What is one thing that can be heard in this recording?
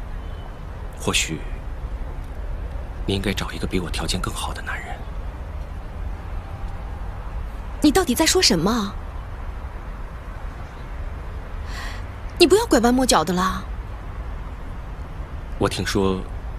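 A young man speaks quietly and sadly.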